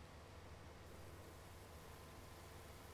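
Grain pours into a trailer with a soft rushing hiss.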